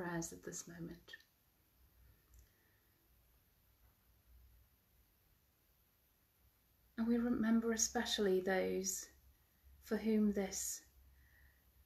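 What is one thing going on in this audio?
A woman speaks calmly and closely into a microphone, pausing between phrases.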